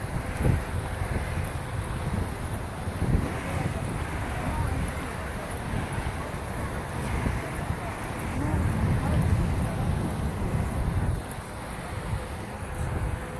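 Footsteps of a group walk on a paved road.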